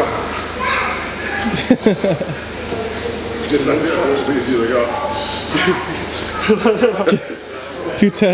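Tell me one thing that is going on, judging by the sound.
A man laughs loudly close by.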